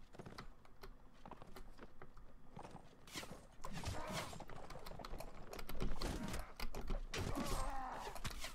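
Horse hooves thud rapidly over grass at a gallop.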